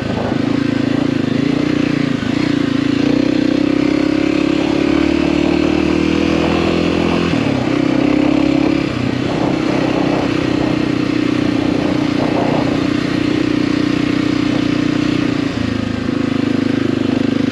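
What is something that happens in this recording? A motorcycle engine hums steadily and changes pitch as it shifts gears.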